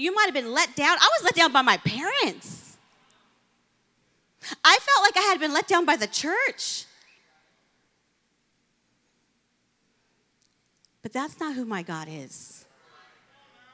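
A woman speaks with animation into a microphone, heard through loudspeakers, with pauses between phrases.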